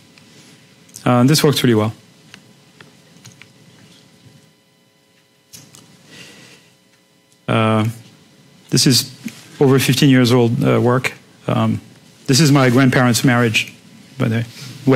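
A man lectures through a microphone, speaking in bursts with pauses.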